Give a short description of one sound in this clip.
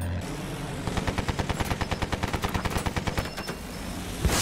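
A machine gun fires in rapid bursts.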